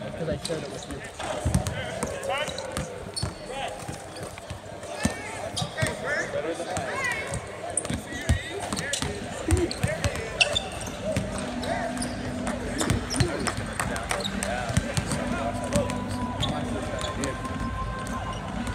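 Basketballs bounce on a wooden court in a large echoing arena.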